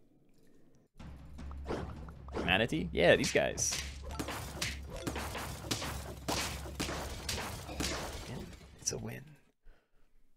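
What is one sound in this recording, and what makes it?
Cartoonish battle sound effects thump and pop rapidly.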